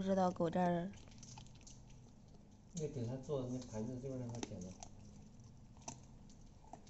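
A puppy gnaws and chews on a bone close by.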